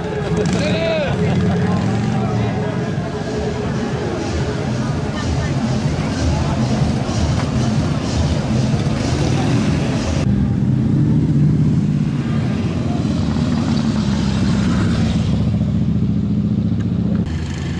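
Motorcycle engines rumble and idle nearby.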